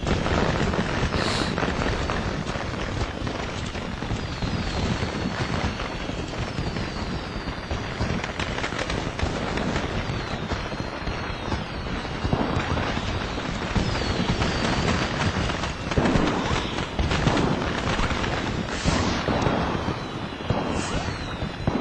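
Footsteps fall on stone.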